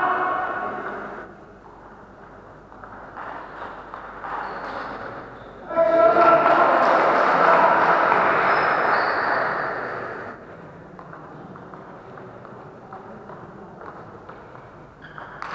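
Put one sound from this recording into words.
A table tennis ball clicks back and forth on paddles and a table in a large echoing hall.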